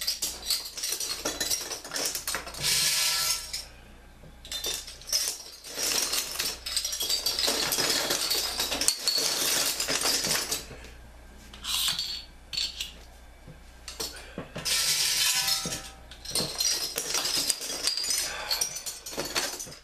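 Bottle caps rattle and clatter inside a box as it is shaken.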